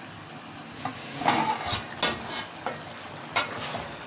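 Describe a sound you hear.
A metal lid clatters as it is lifted off a pot.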